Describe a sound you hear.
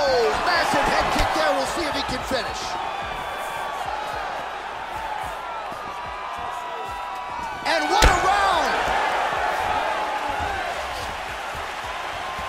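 A crowd cheers and whistles in a large arena.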